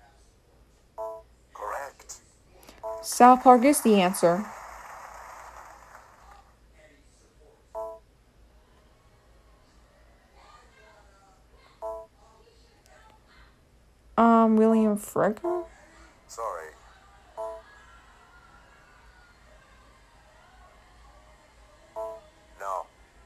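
A handheld game console plays short electronic chimes.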